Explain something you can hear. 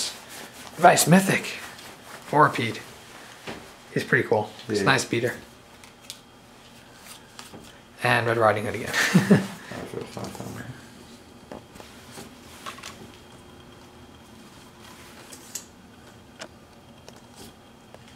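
Playing cards slide and tap softly against each other in hands.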